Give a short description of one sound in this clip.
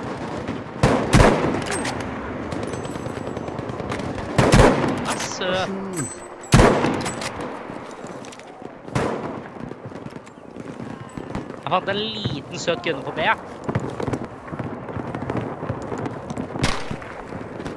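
A rifle fires with loud, sharp cracks that echo away.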